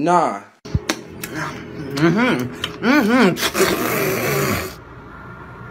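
A young man smacks and slurps noisily while eating.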